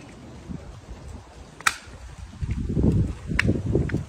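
A stroller wheel clicks as it is fitted.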